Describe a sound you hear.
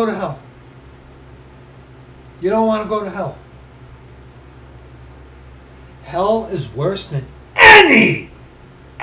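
A man speaks close to a microphone in short bursts, ending with a loud exclamation.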